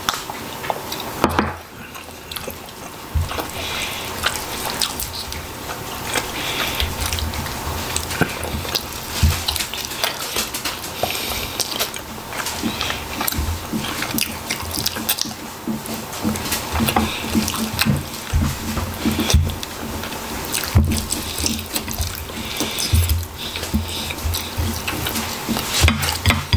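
A man chews food noisily with his mouth open, close by.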